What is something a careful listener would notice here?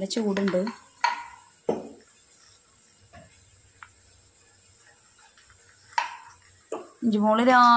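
Dishes clink and clatter now and then.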